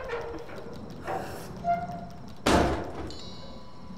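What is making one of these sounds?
A heavy crate lid is pried and bangs open.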